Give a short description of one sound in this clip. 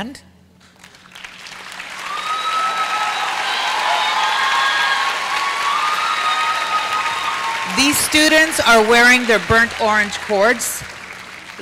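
A crowd of young people cheers and shouts.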